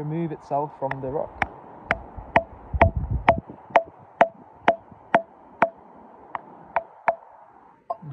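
A metal chisel taps steadily against a rock.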